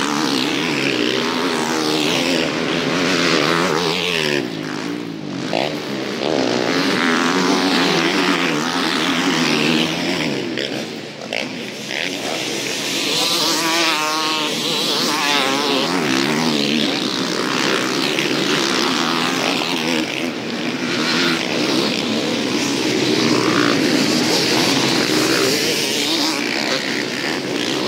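Dirt bike engines roar and whine loudly as motorcycles race past nearby.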